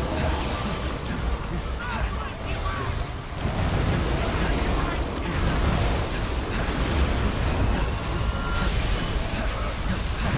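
Sword strikes and explosions clash and boom with heavy impacts.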